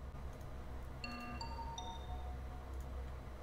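A game alarm chimes briefly for a meeting.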